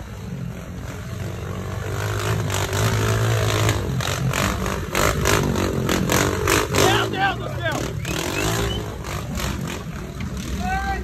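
A small dirt bike engine revs and sputters close by.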